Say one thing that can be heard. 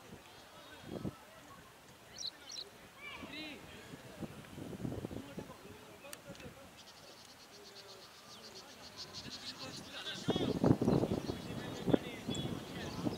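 Men talk and call out to each other outdoors.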